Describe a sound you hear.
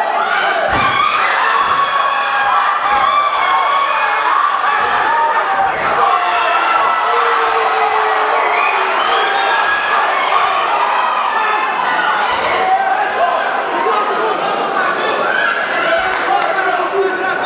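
A crowd shouts and cheers loudly around an echoing arena.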